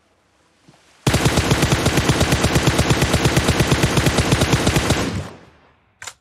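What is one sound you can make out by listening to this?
A rifle fires in a fast, loud burst.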